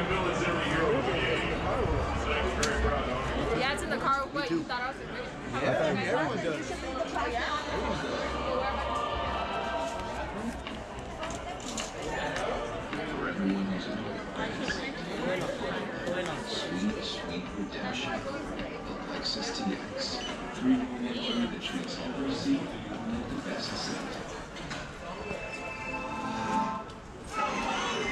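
A crowd of people chatter.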